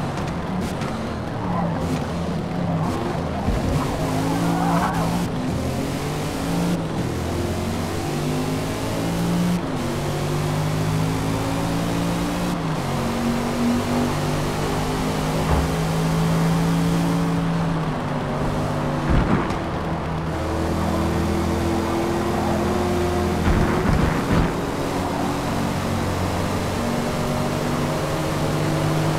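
A car engine roars and revs up and down through its gears.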